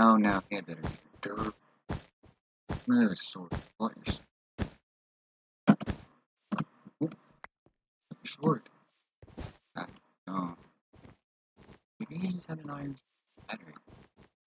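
Game blocks are placed with quick, soft clicks.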